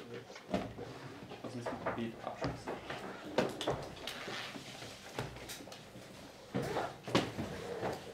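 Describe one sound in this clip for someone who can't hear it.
A man handles objects with soft knocks and rustles.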